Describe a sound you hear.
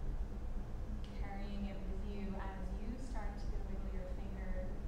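A woman speaks softly and calmly.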